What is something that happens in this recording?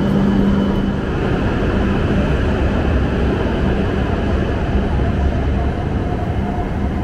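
A high-speed train rushes past with a loud roar.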